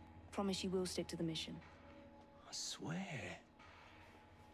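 A young man answers in a relaxed voice, close by.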